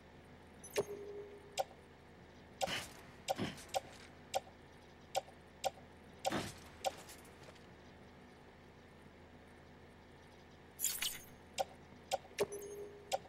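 Short electronic menu ticks sound again and again.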